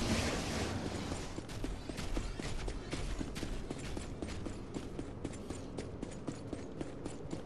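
Heavy armoured footsteps thud at a steady, quick pace.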